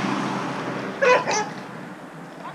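A dog barks twice.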